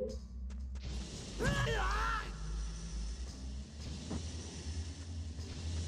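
A burst of fire whooshes and crackles.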